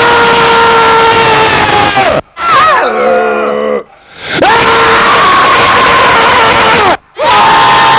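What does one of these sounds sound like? A man yells a long, drawn-out cry into a microphone.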